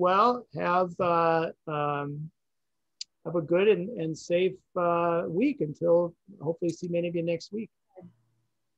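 A young woman speaks cheerfully over an online call.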